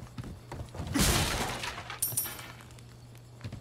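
A wooden barrel smashes apart with a loud crash.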